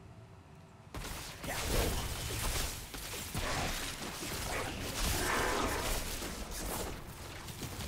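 Blows land with heavy thuds as game monsters are struck.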